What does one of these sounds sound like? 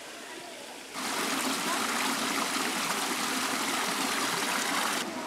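Water trickles and splashes over rocks.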